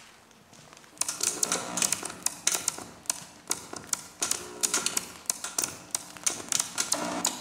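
Electronic music with sharp clicks and rattling beats suddenly starts and plays loudly through speakers.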